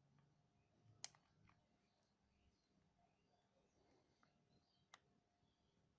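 A battery pack knocks lightly as it is picked up and handled.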